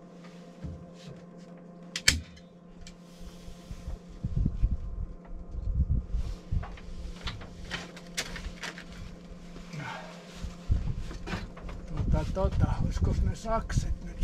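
Plastic foil rustles and crinkles.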